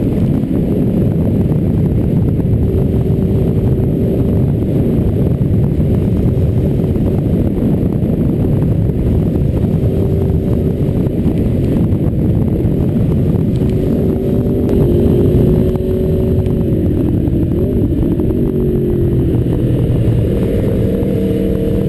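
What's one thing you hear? Wind rumbles loudly and steadily against a moving rider.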